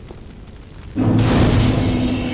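A fire flares up with a loud whoosh.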